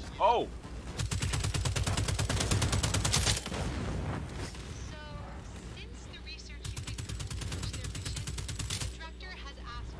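Rapid automatic gunfire rattles in quick bursts.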